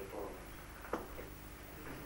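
A woman talks quietly close by.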